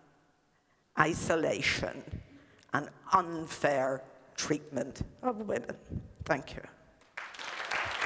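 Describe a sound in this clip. An elderly woman speaks with animation through a headset microphone.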